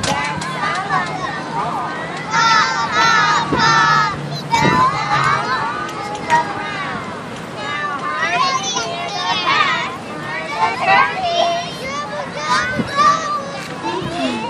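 A group of young children sing together outdoors.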